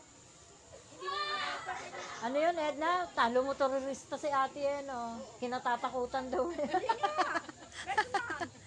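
A woman talks loudly and excitedly close by.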